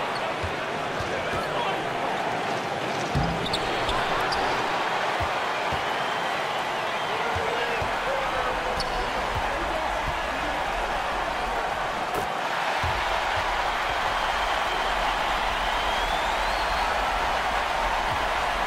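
Sneakers squeak on a wooden court.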